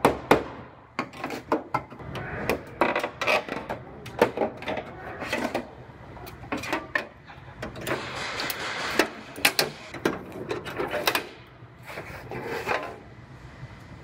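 A screwdriver scrapes and clicks against metal clips.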